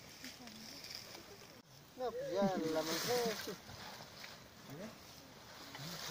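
A shovel digs and scrapes into soil.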